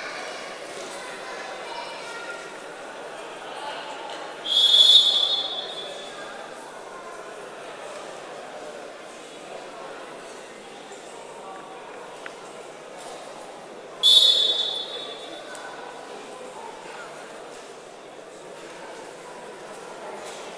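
A crowd of spectators murmurs in the background.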